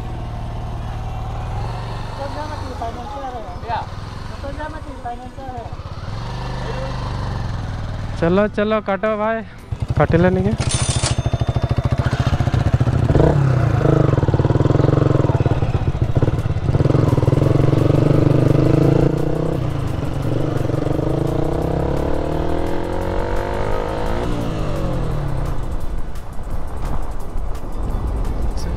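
A motorcycle engine idles and then revs as the bike rides off.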